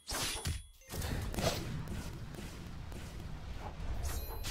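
A magical blast roars and crackles.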